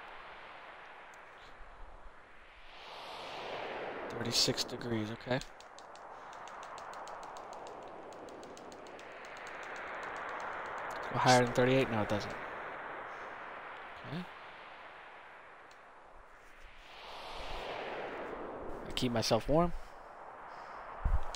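Skis hiss over snow in slow, swelling rushes.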